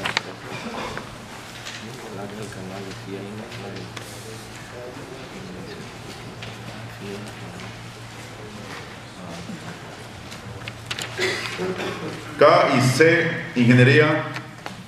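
A man speaks steadily into a microphone, heard over a loudspeaker in a room.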